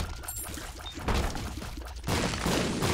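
A rumbling explosion bursts in a video game.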